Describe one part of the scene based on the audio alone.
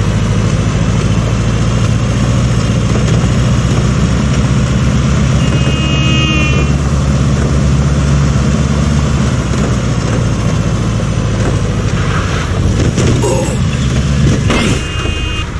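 A truck engine rumbles steadily as it drives.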